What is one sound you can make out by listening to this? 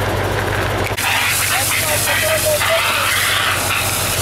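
Water sprays hard from a fire hose with a rushing hiss.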